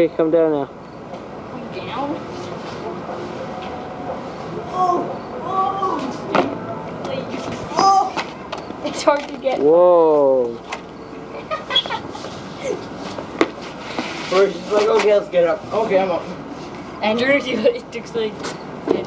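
Young boys talk and call out excitedly nearby.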